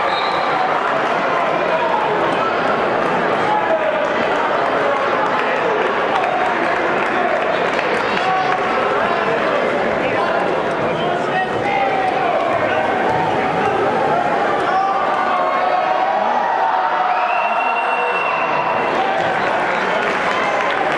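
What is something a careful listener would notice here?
A large crowd chatters and cheers in an echoing gym.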